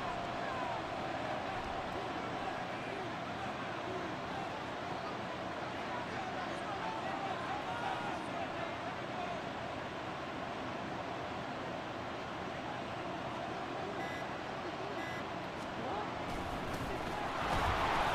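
A large crowd murmurs and cheers steadily in a big open stadium, swelling louder near the end.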